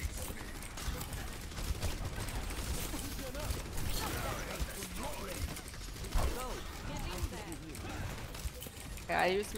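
Gunfire and explosions crackle in a busy video game battle.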